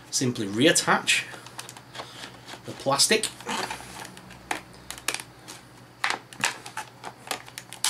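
A plastic cap clicks and rattles against a plastic bottle.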